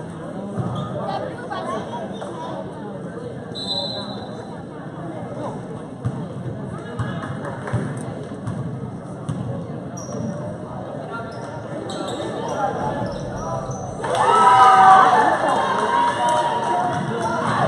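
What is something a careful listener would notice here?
Basketball shoes squeak on a gym floor.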